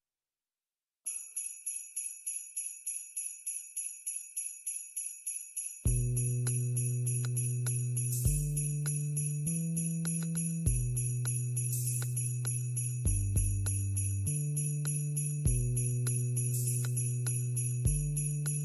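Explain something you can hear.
Gentle chiming electronic music plays with a steady, ticking beat.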